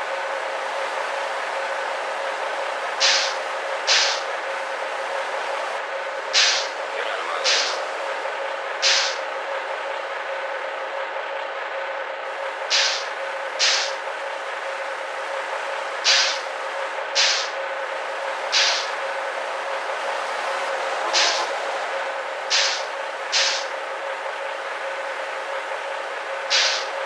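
A bus engine idles with a steady hum.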